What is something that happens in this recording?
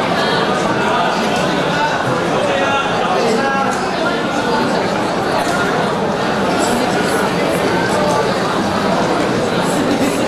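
A young man speaks into a microphone over a loudspeaker in a large hall.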